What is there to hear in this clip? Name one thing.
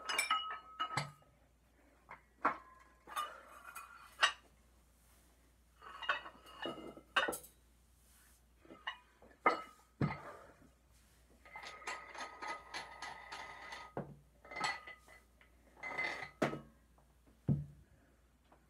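Dull thumps of a body landing on the floor sound now and then.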